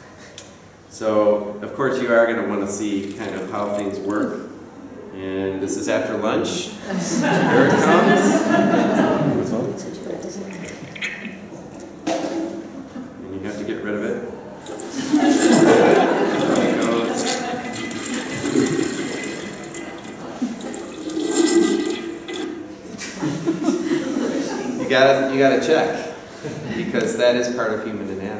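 A middle-aged man speaks calmly to an audience in a room with a slight echo.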